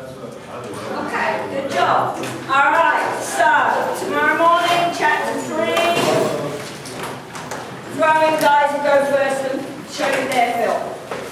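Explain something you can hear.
A woman speaks with animation to a room, close by.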